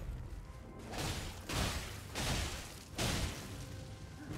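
A sword slashes and strikes an enemy.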